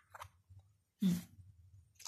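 Playing cards rustle as a hand handles them.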